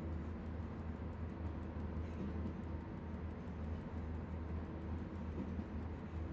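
An electric locomotive's motors hum and rumble steadily as the train rolls along.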